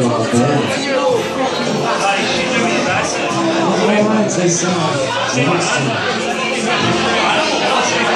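Many people chatter and laugh loudly all around in a crowded room.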